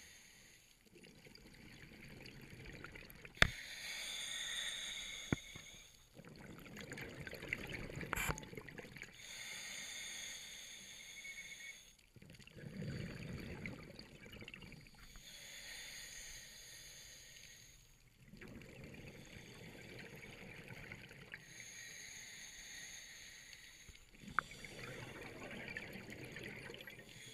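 Exhaled air bubbles rumble and gurgle close by.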